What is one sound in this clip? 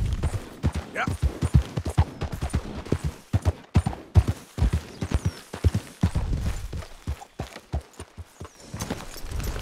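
Horse hooves clop steadily on rocky ground.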